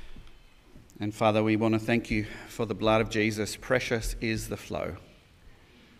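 A man speaks into a microphone through a loudspeaker in a large echoing hall.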